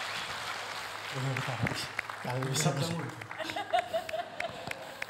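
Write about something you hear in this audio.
A man speaks on stage.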